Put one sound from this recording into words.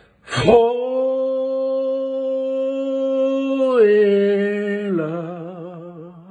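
A middle-aged man sings long held notes up close, stepping down in pitch and ending with a wavering vibrato.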